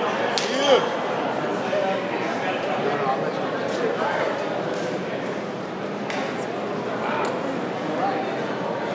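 A crowd of men and women chatters all around in a busy echoing corridor.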